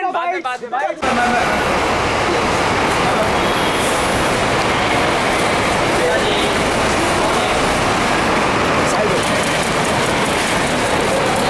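A crowd of men shout and call out loudly and continuously.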